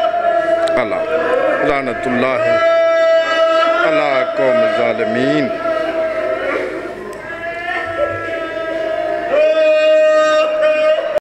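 A man chants a slow, mournful lament through a microphone, holding long notes.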